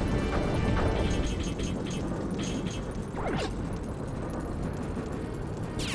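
A spacecraft engine hums low and steady in a video game.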